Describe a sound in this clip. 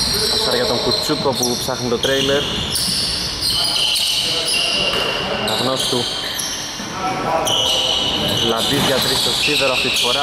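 Men shout to each other during a basketball game in an echoing indoor hall.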